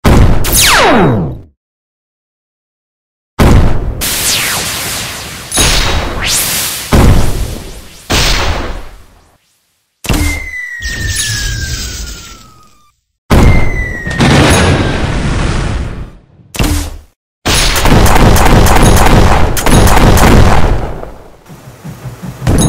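Loud explosions burst one after another.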